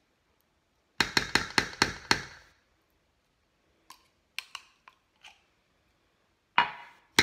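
A spoon scrapes almond butter from a jar.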